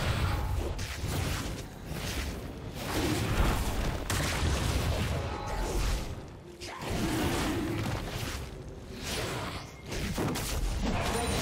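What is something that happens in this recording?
Fighting sound effects clash and thud steadily.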